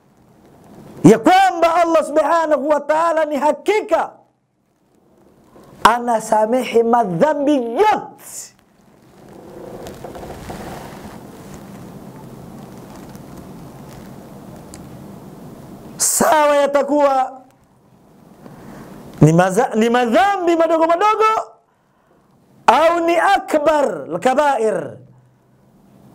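A middle-aged man preaches forcefully into a microphone, in bursts with pauses.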